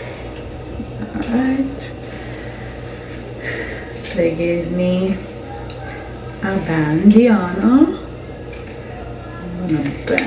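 A young woman talks casually and close to a microphone.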